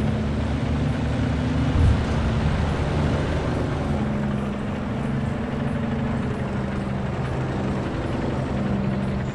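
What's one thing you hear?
Tank tracks clatter on a road.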